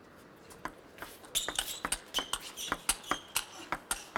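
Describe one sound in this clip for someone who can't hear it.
A ping-pong ball clicks back and forth between paddles and table in a quick rally.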